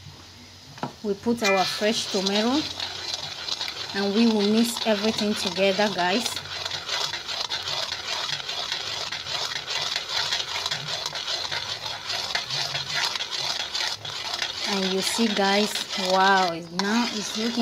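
A metal ladle scrapes and stirs thick sauce in a metal pan.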